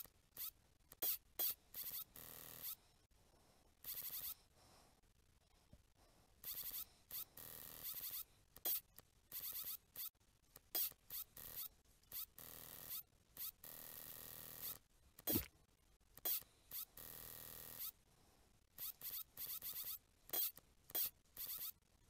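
A mechanical claw on a spring whirs and clanks in short bursts.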